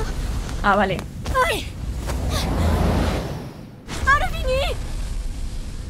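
A magical blast whooshes and rumbles.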